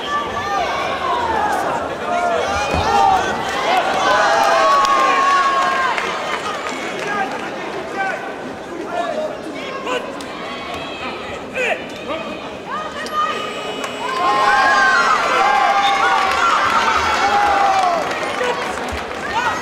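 Karate fighters shout sharply as they strike.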